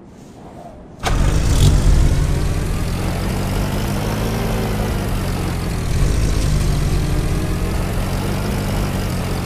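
A car engine starts and runs with a steady rumble.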